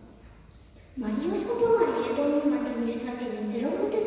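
A choir sings slowly in a large echoing hall.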